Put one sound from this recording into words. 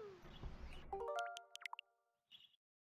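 Short electronic menu beeps chime in quick succession.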